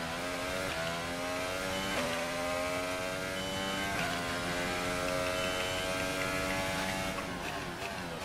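A racing car engine screams at high revs, climbing in pitch through each gear.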